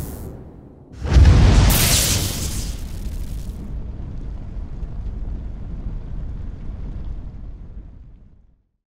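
Flames burst up with a loud whoosh and roar.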